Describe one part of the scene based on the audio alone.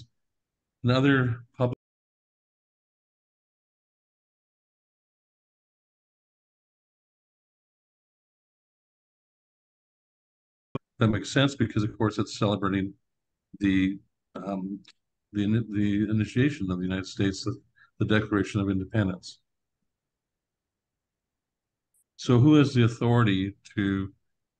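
A middle-aged man speaks calmly over an online call, with long pauses.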